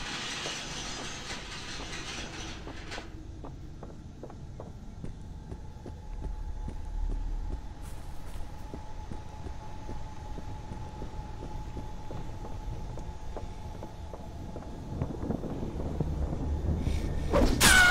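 Footsteps thud steadily on wooden stairs and paving.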